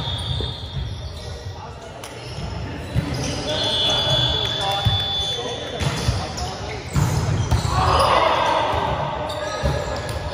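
Young people call out and chatter in an echoing hall.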